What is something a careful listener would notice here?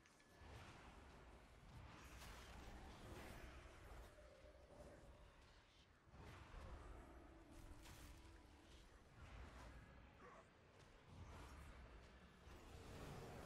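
Low rumbling booms of combat roll on.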